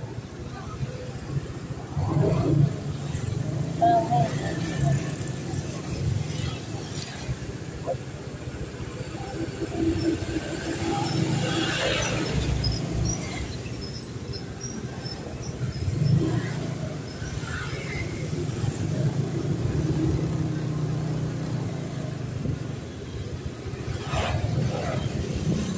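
Traffic passes by on a street.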